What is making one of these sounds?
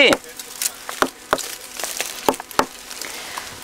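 A stick knocks against a tree trunk.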